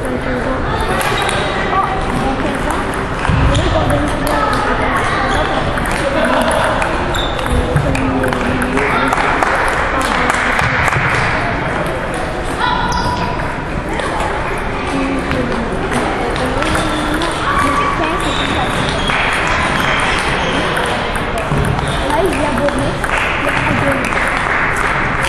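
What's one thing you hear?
Many people murmur and talk in a large echoing hall.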